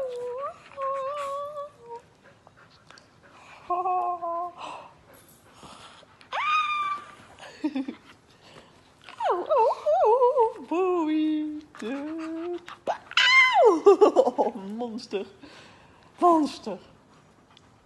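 A dog whines and yelps close by in high, bending cries.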